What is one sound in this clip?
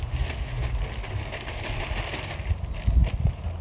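Potting soil pours from a bag into a wheelbarrow with a soft rushing hiss.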